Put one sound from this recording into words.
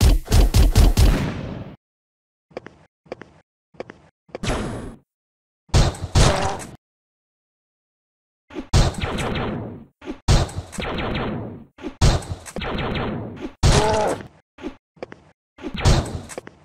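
Gunfire from a video game blasts in rapid bursts.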